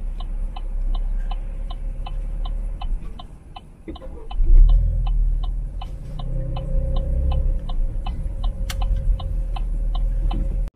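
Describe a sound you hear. A car's turn signal ticks steadily.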